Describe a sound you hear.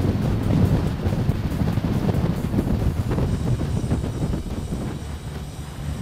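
Wind buffets loudly against a microphone outdoors.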